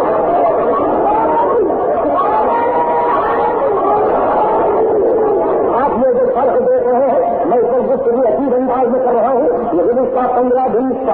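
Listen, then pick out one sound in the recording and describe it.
A middle-aged man speaks with animation into a microphone, heard through an old, muffled recording.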